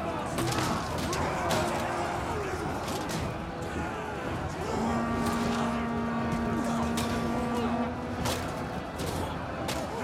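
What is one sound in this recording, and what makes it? A large crowd of soldiers shouts and yells in battle.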